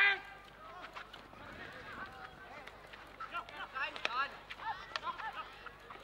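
Field hockey sticks strike a ball with sharp clacks.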